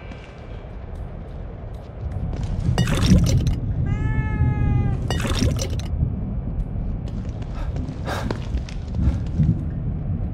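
Footsteps fall on a hard tiled floor.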